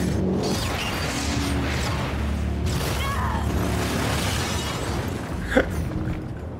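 An explosion roars with a deep rumble.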